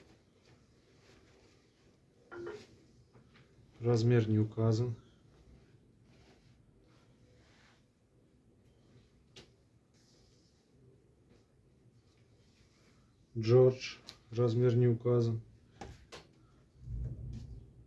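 Cloth rustles softly as garments are laid down and smoothed flat.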